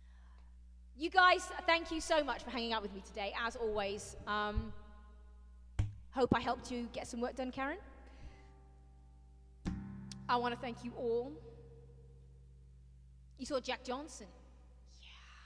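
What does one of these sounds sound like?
A woman speaks calmly and warmly into a microphone, close by.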